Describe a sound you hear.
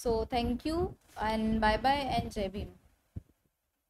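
A young woman speaks calmly and clearly into a microphone.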